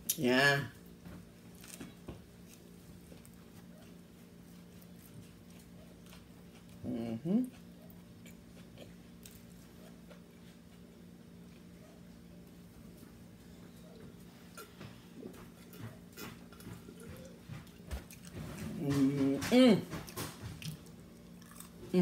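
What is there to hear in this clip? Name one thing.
A young woman chews food and smacks her lips.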